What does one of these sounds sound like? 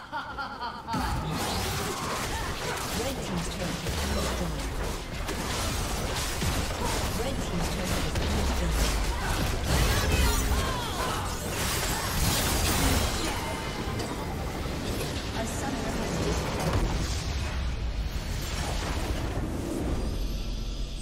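Game battle effects clash and blast in rapid bursts.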